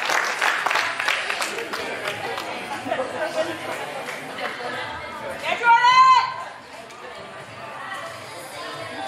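Young women shout and call to each other in a large echoing hall.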